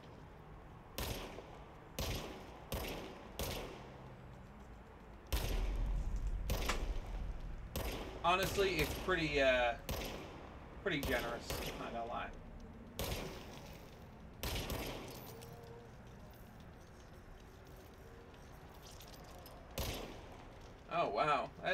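A pistol fires in sharp, repeated shots.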